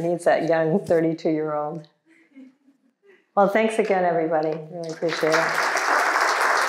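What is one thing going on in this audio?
An elderly woman speaks warmly through a microphone.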